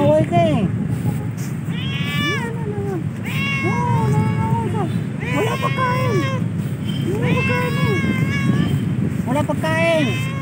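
A cat meows loudly and repeatedly up close.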